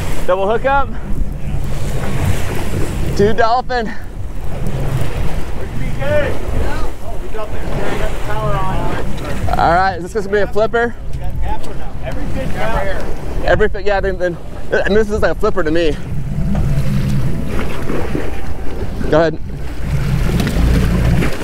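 Waves churn and splash against a boat.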